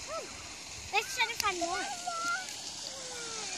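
A young child calls out in a high voice.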